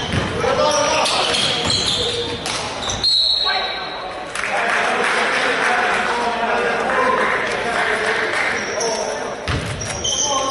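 Players and spectators call out in a large echoing gym.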